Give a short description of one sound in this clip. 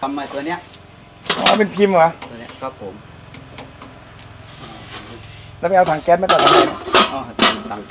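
Sawdust pours softly into a metal drum.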